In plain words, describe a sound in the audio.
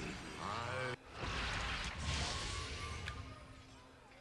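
A magic spell shimmers and hisses.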